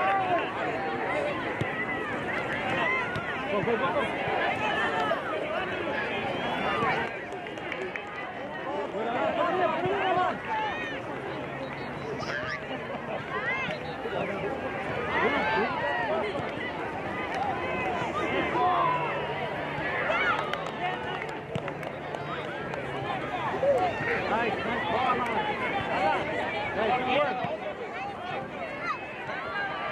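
Young players shout to each other outdoors on an open field.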